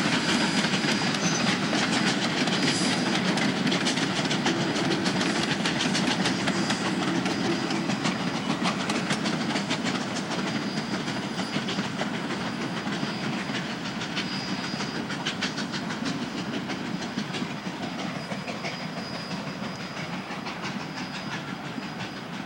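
Steel wheels click and clack over rail joints.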